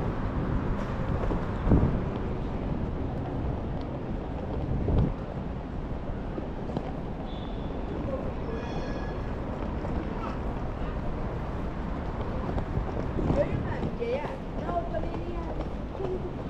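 Outdoors, a steady low rumble of wind blows across the street.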